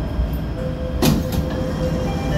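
Train doors slide open with a thud.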